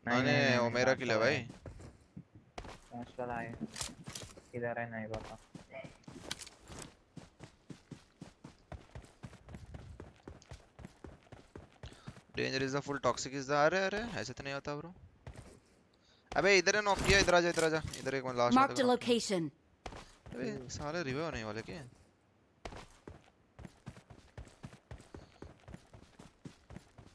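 Footsteps crunch quickly over gravel and dirt.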